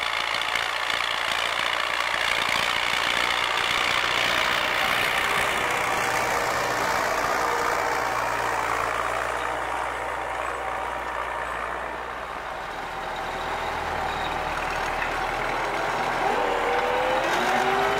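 A plough scrapes and turns heavy soil.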